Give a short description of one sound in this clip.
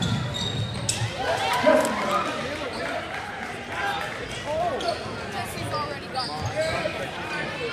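A crowd murmurs and calls out in a large echoing gym.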